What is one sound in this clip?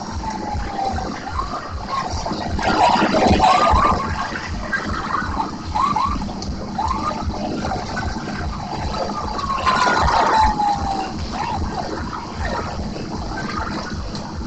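Electronic music thumps with a steady beat from a game cabinet's loudspeakers.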